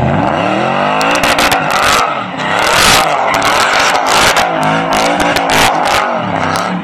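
Tyres screech on pavement as the truck drifts.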